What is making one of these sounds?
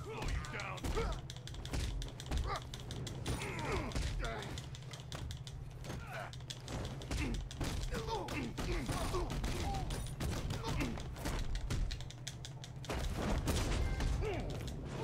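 Punches and kicks thud rapidly in a fight.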